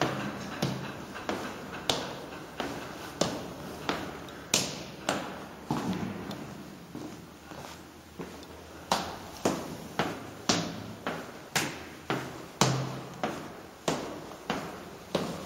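Footsteps thud steadily down wooden stairs in an echoing stairwell.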